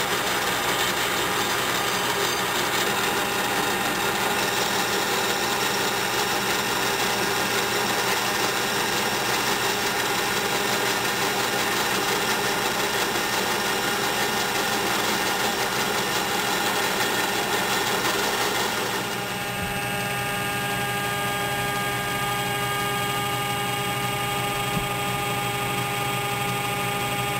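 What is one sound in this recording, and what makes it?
A lathe hums and whirs steadily.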